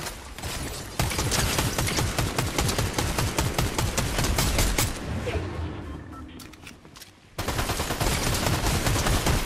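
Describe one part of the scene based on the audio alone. An automatic rifle fires rapid bursts.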